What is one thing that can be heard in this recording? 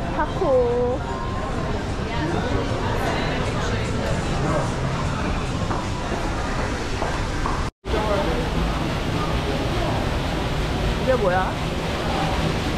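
People chatter in a murmur around a large echoing indoor space.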